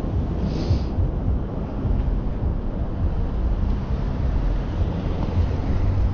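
Cars drive past on a street.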